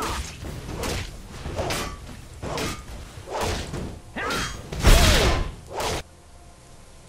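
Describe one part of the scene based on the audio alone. Magic spells burst and crackle in a fight.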